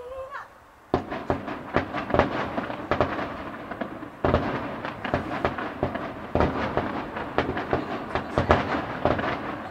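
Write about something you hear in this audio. Fireworks crackle rapidly.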